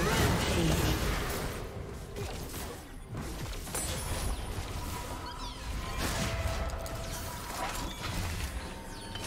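Game weapons strike with sharp hits.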